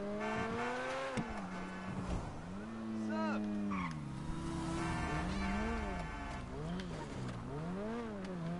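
A car engine revs up and down as it drives.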